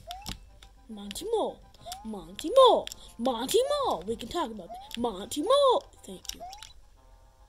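Brighter chiming electronic game tones ring out in quick bursts.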